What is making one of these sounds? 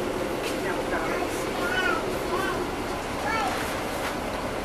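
A woman talks on a phone close by.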